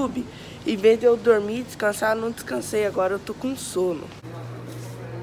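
A teenage boy talks with animation close by.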